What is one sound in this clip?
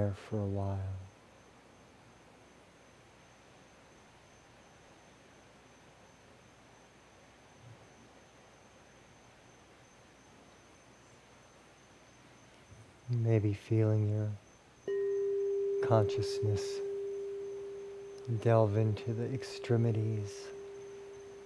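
A man speaks calmly and softly close by.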